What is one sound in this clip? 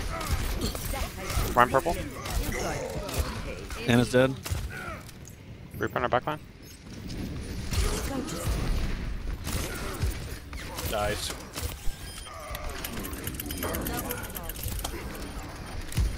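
Game gunshots fire in quick bursts.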